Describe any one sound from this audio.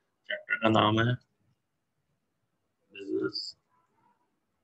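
A man speaks calmly, close to a microphone, in short bursts.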